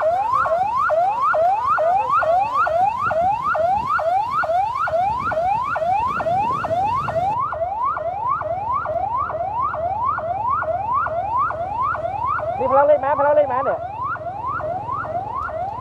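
A police siren whoops over and over.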